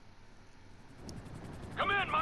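A helicopter's rotor chops steadily.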